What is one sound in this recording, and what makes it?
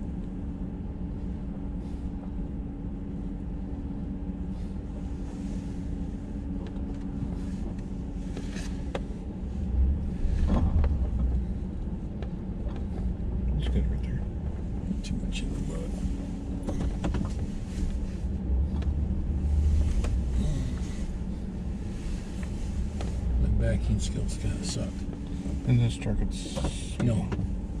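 Tyres crunch and rumble over a rough dirt road.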